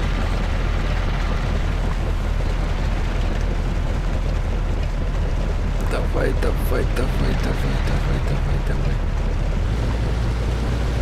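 A vintage car engine drones as the car drives.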